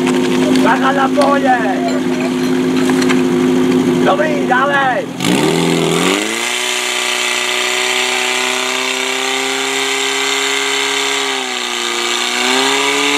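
A portable fire pump's petrol engine runs hard.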